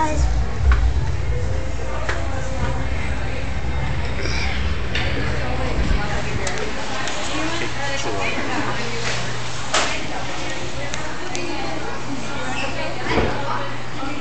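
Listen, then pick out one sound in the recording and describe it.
A crowd of people chatters in a busy indoor space.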